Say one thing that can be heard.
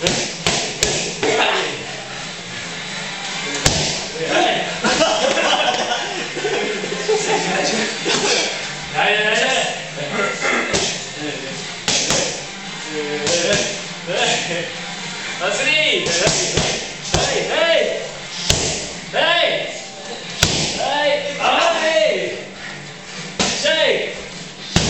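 Kicks and punches thud sharply against pads.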